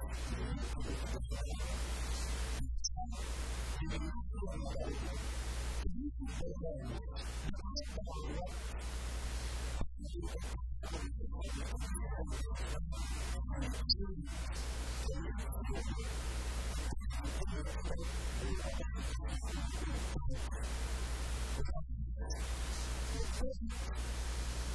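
A man speaks with animation into a microphone, heard through loudspeakers in an echoing room.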